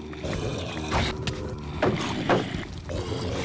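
Blows thud sharply against a creature several times.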